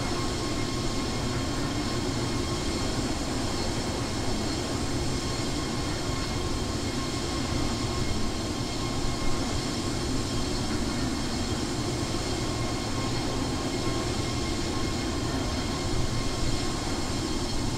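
Jet engines roar steadily in flight.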